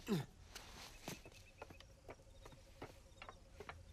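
Footsteps clatter on roof tiles.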